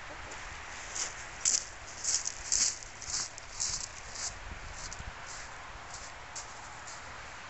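Footsteps crunch on shingle.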